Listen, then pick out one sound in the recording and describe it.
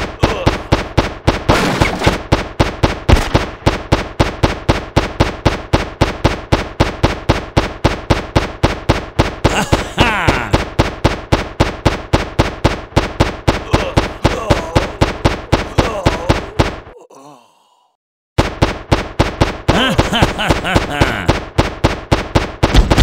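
Gunshots fire in a fast, steady rhythm.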